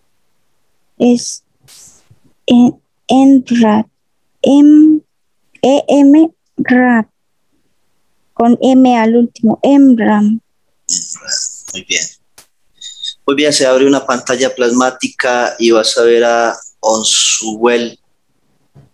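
A man speaks calmly through a headset microphone on an online call.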